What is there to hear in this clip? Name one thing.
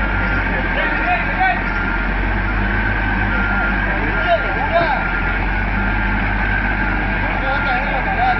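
Men talk and call out nearby with animation.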